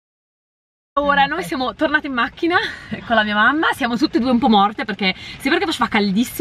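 A young woman talks cheerfully close to a microphone.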